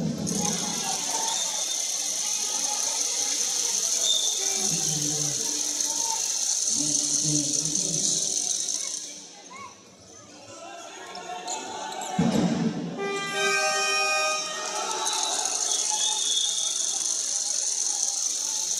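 Sports shoes squeak on a wooden court.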